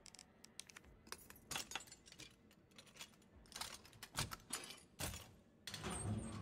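Metal clicks and rattles as a crank on a lock is turned.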